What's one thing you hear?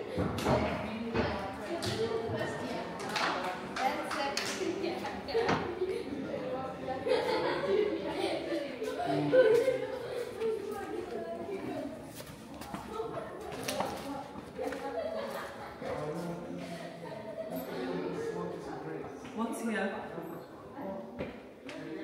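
A woman talks casually nearby in an echoing room.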